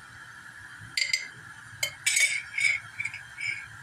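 A metal spoon clinks and scrapes against a pan.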